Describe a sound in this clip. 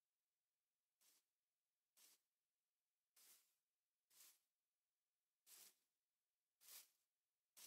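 Short soft clicks sound from a game menu, one after another.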